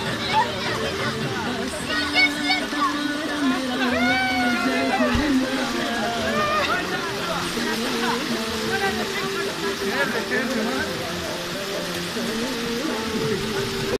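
Water rushes and splashes steadily down a channel.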